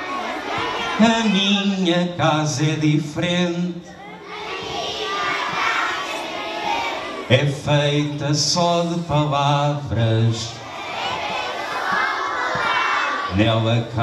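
A man sings into a microphone in a large hall.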